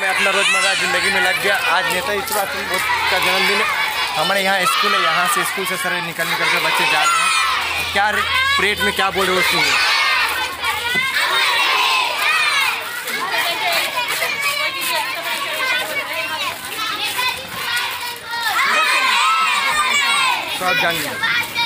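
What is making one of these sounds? Many children chatter and shout all around.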